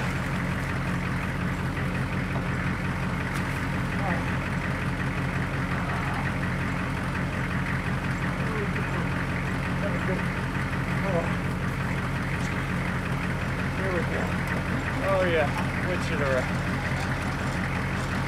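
A large diesel engine idles steadily nearby.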